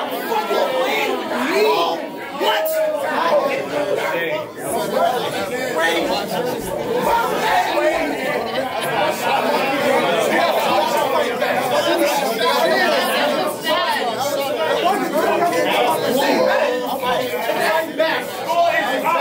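A crowd of men murmurs and cheers nearby.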